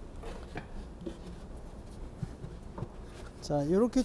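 A wooden box lid thumps down.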